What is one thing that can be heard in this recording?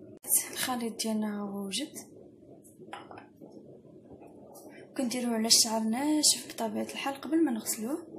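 A wooden spoon stirs liquid in a bowl.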